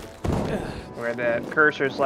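A climber's hands thump against a metal ledge.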